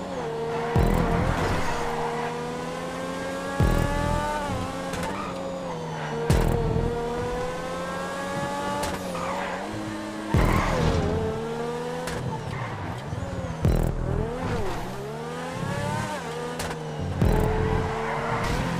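A sports car engine revs high and shifts gears.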